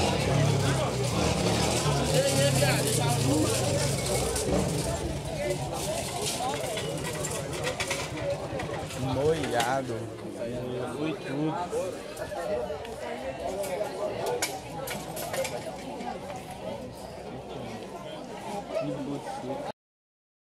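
A crowd of young men and women talks and shouts excitedly nearby.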